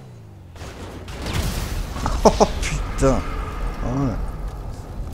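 A car crashes hard with loud thuds.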